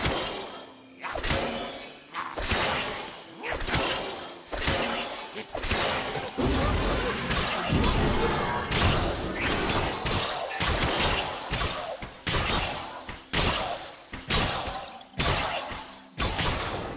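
Magic spell effects whoosh and burst again and again.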